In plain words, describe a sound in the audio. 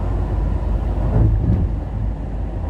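A car rushes past close by.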